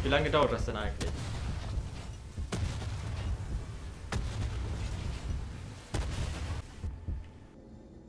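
Energy weapons fire with crackling blasts and booms.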